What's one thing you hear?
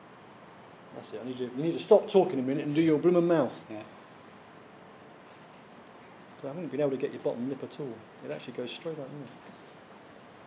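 An older man talks calmly, close by.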